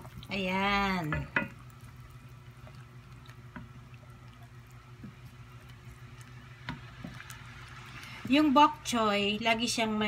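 A wooden spoon stirs a pot of broth.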